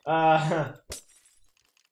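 A blow lands with a short thud.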